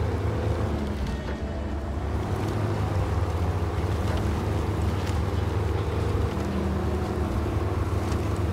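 Truck tyres crunch over a muddy track.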